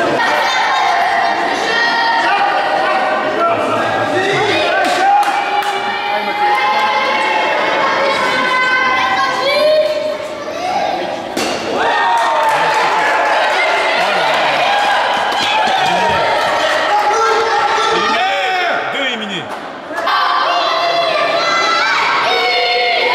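Children shout and cheer loudly in a large echoing hall.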